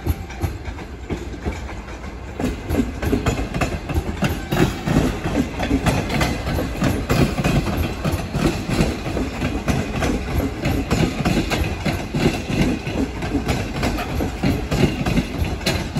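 A passenger train rumbles past along the tracks.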